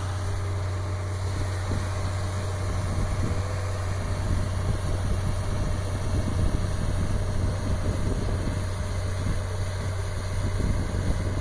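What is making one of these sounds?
A snow blower engine rumbles steadily nearby.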